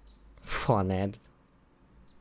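A young man lets out a loud, drawn-out exclamation close to a microphone.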